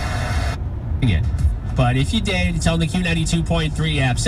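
Music plays from a car radio speaker.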